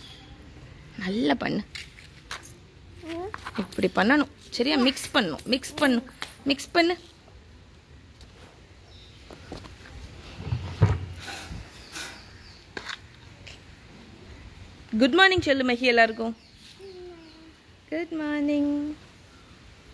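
A toddler babbles and talks in a high voice close by.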